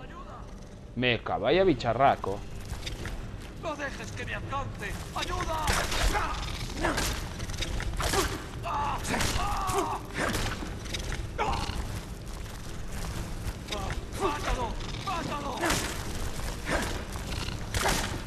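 A giant spider screeches and hisses.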